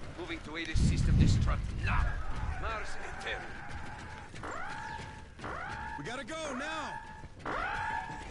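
Footsteps thud as soldiers run across a hard floor.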